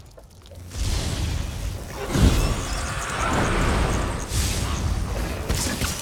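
Electric lightning crackles and buzzes loudly.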